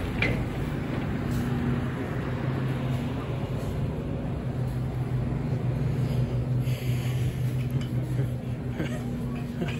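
Refrigerated display cases hum steadily.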